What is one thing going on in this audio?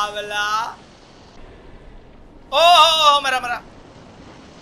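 A young man speaks loudly and excitedly into a microphone, close by.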